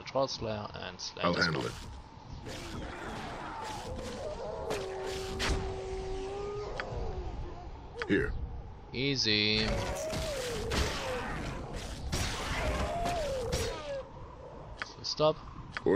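Swords clash and strike in a fight, with sharp repeated hits.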